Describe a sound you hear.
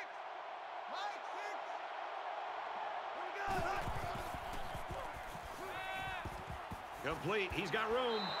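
A large stadium crowd cheers steadily in the distance.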